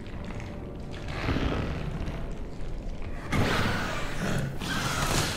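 A monster growls and snarls loudly.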